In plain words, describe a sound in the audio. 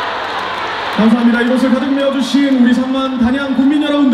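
A young man sings into a microphone, heard through loudspeakers in a large echoing hall.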